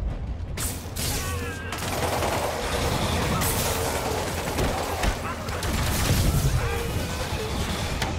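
Electric blasts crackle and zap.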